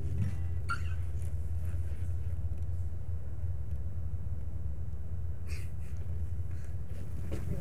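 A man strums an acoustic guitar.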